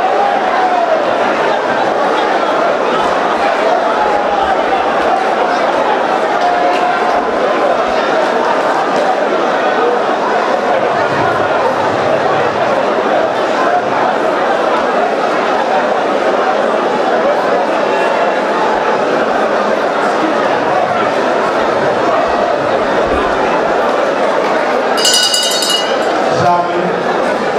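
A large crowd prays aloud with fervent, overlapping voices.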